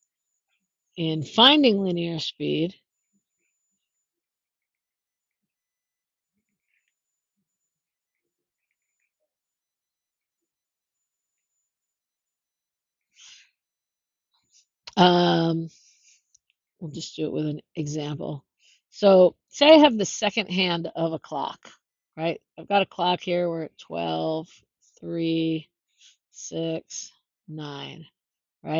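A woman speaks calmly into a microphone, explaining.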